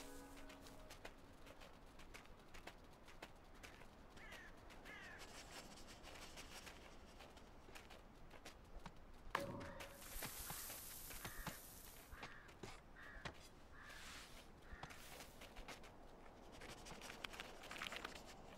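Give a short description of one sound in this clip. A small animal's paws patter quickly over soft ground.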